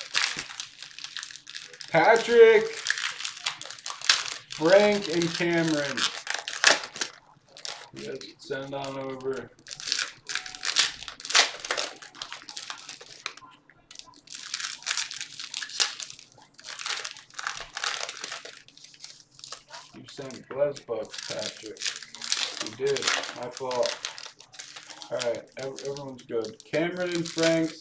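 Foil card wrappers crinkle and tear as hands open packs.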